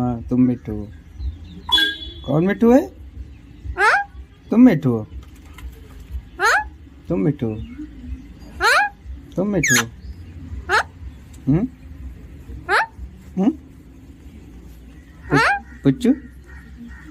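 A parrot squawks and chirps close by, over and over.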